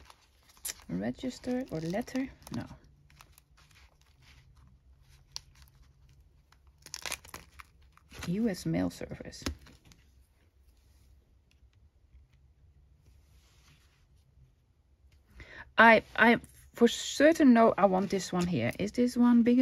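Paper rustles softly as hands handle it.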